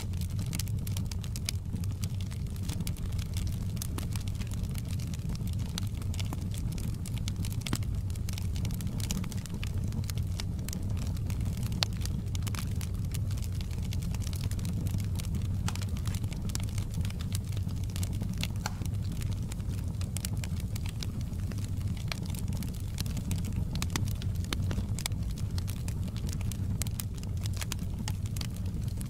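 A log fire crackles and pops with sharp snaps throughout.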